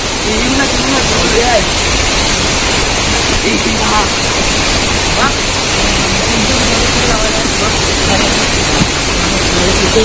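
A shallow stream rushes and gurgles steadily over rocks.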